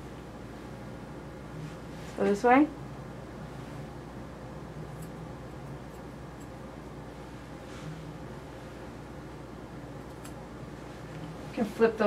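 Scissors snip at a dog's fur.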